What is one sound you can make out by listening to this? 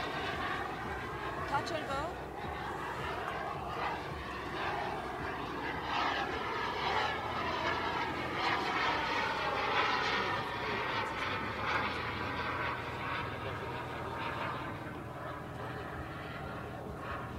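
A jet plane roars overhead with a loud, rushing noise that slowly fades.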